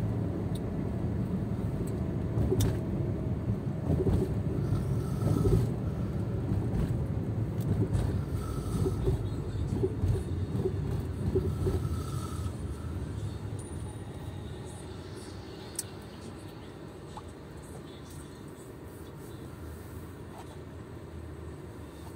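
A car engine hums and tyres roll on the road from inside the car, slowing down.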